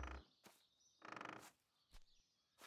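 A pig grunts nearby.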